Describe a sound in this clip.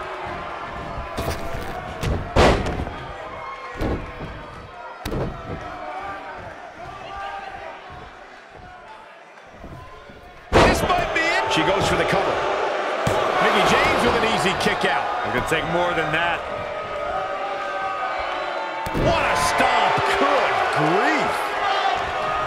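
A large crowd cheers and murmurs throughout.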